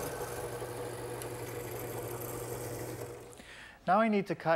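A drill press whirs as it bores into wood.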